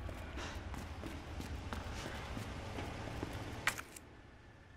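Footsteps tread on a hard concrete floor.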